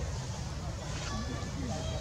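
A baby monkey squeals.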